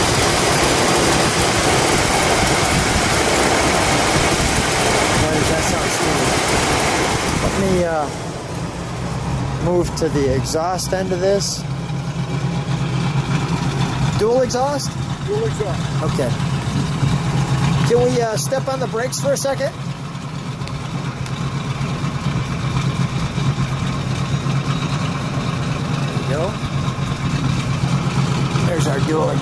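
A car engine idles with a loud, steady rumble.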